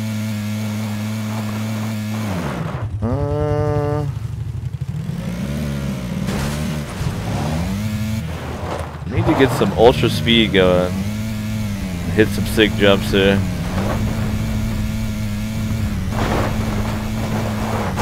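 A buggy engine roars and revs throughout.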